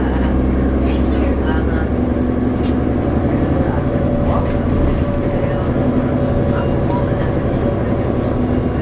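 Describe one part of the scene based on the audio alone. A vehicle's engine hums steadily, heard from inside.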